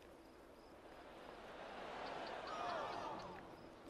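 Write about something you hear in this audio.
A crowd cheers and applauds in the distance.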